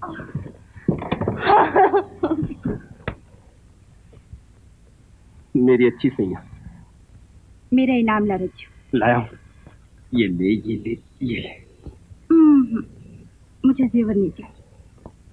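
A young man speaks playfully, close by.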